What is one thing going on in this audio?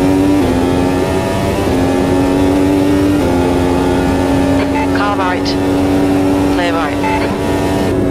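A racing car engine whines loudly at high revs, shifting pitch with each gear change.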